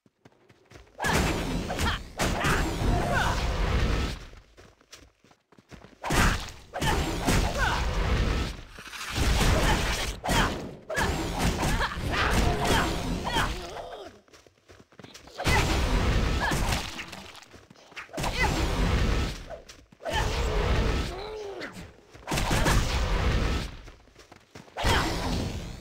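Magic spells crackle and boom in bursts during a fight.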